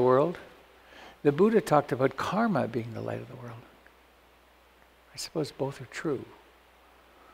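An elderly man speaks calmly and thoughtfully into a microphone, with pauses.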